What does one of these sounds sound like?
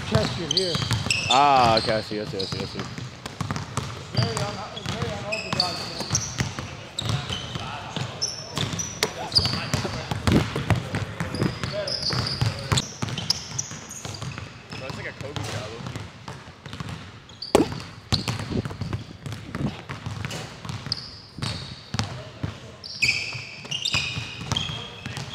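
Basketballs bounce sharply on a wooden floor in a large echoing hall.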